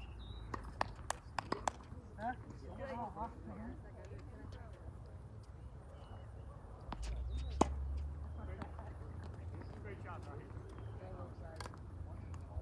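Tennis balls pop off a racket.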